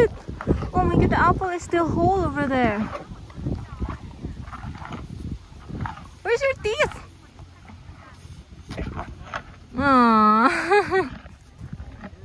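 A cow lows close by.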